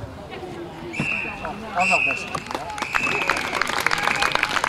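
A referee's whistle blows several sharp blasts across an open field.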